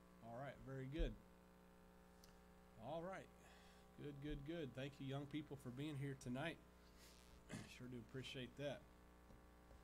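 A man speaks calmly through a microphone in a large echoing room.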